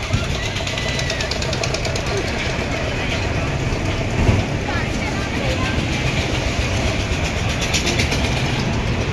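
A fairground ride rattles and whooshes as it spins.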